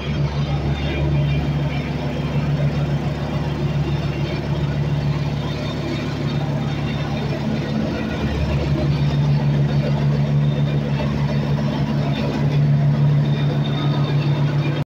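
A plate compactor engine rumbles and thumps steadily close by.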